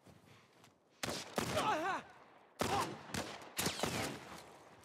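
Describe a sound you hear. Gunshots bang sharply.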